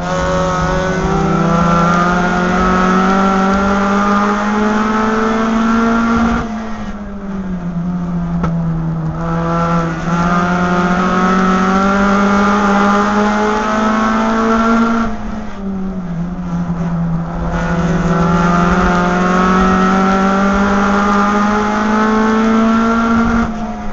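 A race car engine roars loudly from inside the cabin, rising in pitch under acceleration and dropping as the driver lifts off for the corners.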